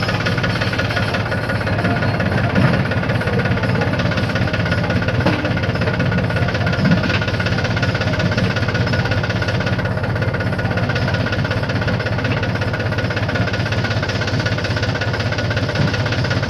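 A diesel tractor's engine idles close by.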